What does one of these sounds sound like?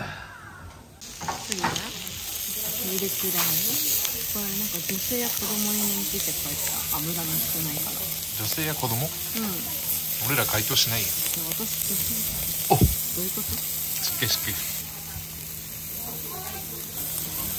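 Meat sizzles loudly on a hot grill.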